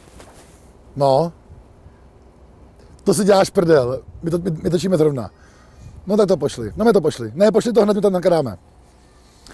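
A man talks on a phone with animation, close by.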